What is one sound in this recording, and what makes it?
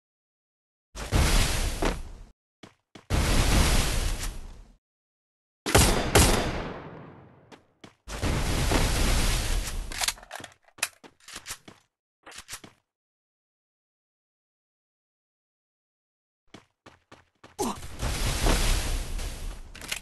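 Walls burst up one after another with a loud rushing crash.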